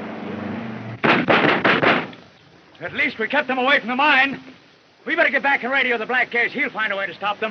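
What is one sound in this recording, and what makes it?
Men speak loudly outdoors.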